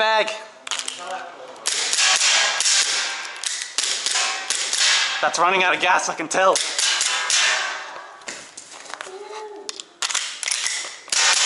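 Pistol shots ring out in quick bursts, echoing in an enclosed room.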